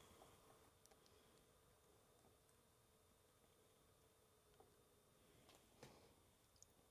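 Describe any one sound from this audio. A dropper clicks and taps softly against a small glass bottle.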